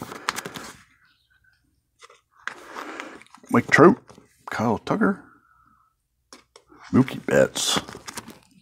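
Plastic sleeves crinkle and rustle as pages are handled.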